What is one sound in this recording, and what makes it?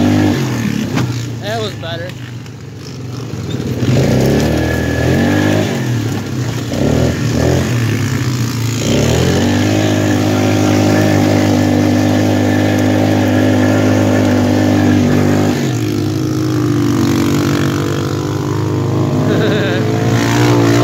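An all-terrain vehicle engine revs and drones steadily, close by.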